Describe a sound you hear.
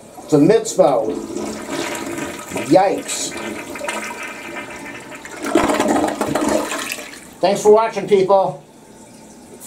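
A toilet flushes with a rushing, gurgling swirl of water.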